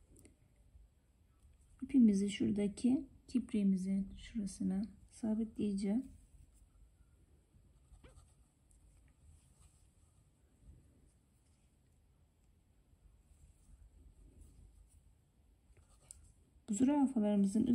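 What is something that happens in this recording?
A needle and thread rustle softly through fabric.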